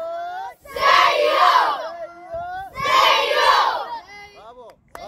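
A crowd of children shouts and cheers together outdoors.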